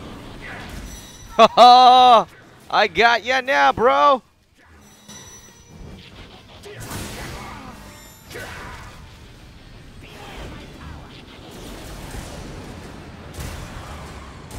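Laser shots zap and whine.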